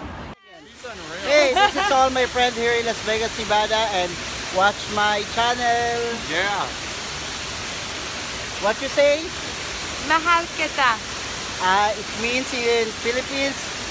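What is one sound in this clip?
A young man talks cheerfully close to the microphone.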